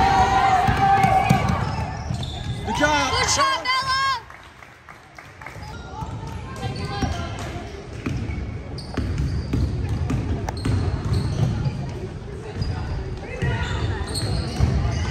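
Many young voices chatter and shout in a large echoing gym.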